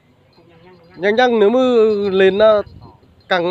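A young man sings loudly nearby.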